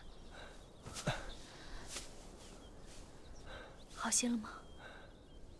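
A young man groans weakly in pain, close by.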